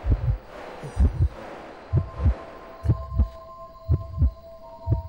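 Heavy footsteps thud on soft ground at a steady running pace.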